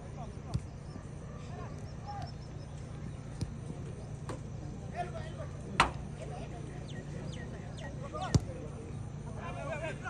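Young men shout to each other outdoors, distant.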